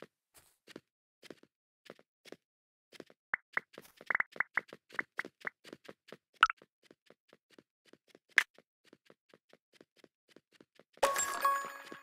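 Quick footsteps patter steadily on hard ground.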